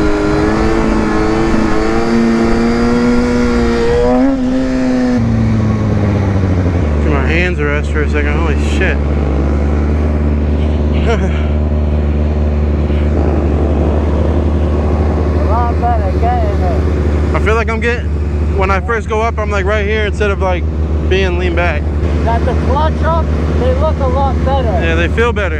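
A motorcycle engine roars at speed, then slows and drops to a steady low idle.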